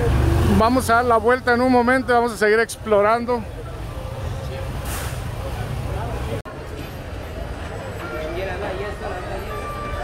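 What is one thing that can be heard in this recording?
A crowd of people chatters and bustles outdoors.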